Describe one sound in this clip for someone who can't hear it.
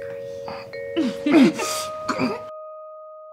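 A man groans close by.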